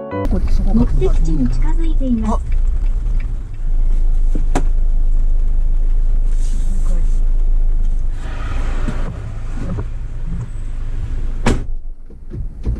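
Heavy rain patters on a car's roof and windscreen.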